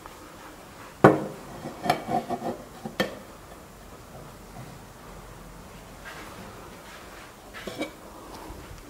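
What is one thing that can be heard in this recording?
A china plate clinks against a wooden shelf.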